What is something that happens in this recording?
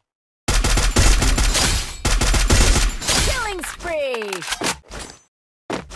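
Automatic gunfire rattles in loud, rapid bursts.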